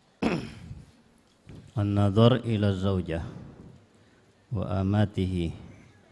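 A man chants in a melodic voice into a microphone.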